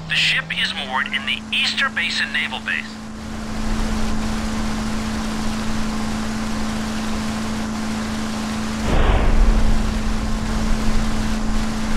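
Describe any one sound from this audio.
A motorboat engine hums steadily.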